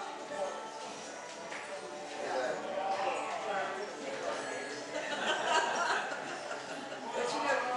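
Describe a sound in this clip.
A man plays a fiddle.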